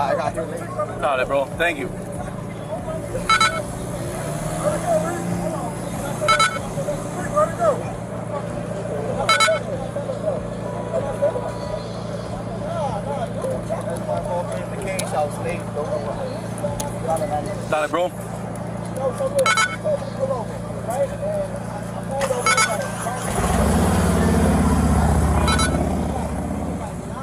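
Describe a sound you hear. A vehicle engine idles nearby with a steady low hum.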